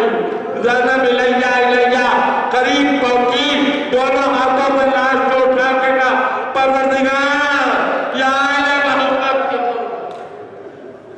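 An elderly man recites in a drawn-out, singing voice through a microphone.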